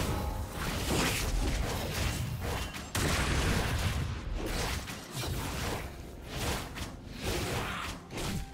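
Video game spell effects whoosh and crackle during a fight.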